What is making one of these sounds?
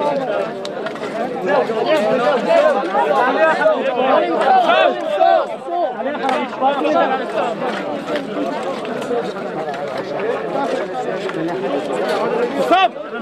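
A crowd of men pray aloud together in a murmuring chant.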